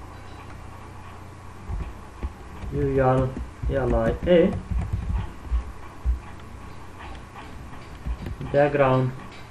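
A keyboard clicks as keys are typed.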